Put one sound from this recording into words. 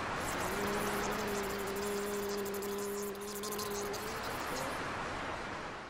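A saxophone holds a long, steady note.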